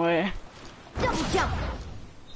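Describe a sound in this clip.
A pickaxe strikes a wooden wall with a thud.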